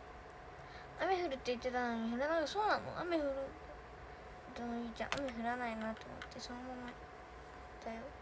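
A young girl speaks close to a phone microphone.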